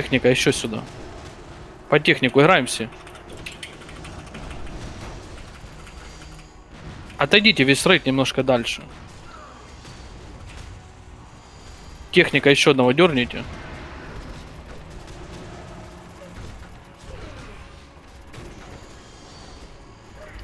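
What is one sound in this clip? Magic spells crackle and whoosh amid clashing combat.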